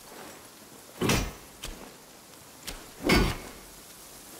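A heavy hammer clangs on metal, ringing briefly.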